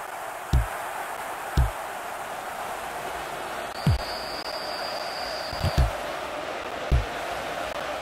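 Dull thuds of a ball being kicked sound every second or two.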